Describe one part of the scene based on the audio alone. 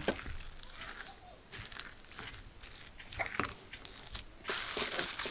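A spoon scrapes and stirs a wet mixture in a glass bowl.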